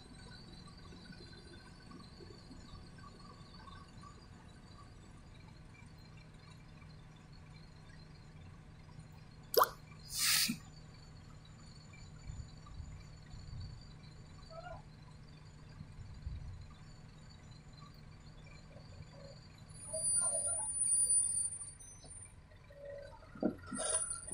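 A backhoe loader's diesel engine runs while it is working.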